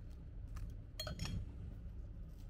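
A knife clicks against a ceramic plate.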